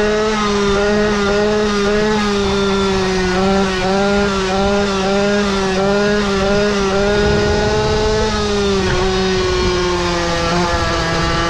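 A small motor whines steadily as a motorbike rides along.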